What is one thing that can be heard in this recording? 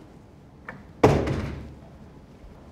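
A door thuds shut, echoing through a large room.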